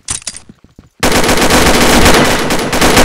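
An assault rifle fires in a rapid burst.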